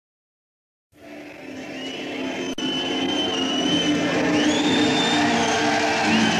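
A crowd cheers.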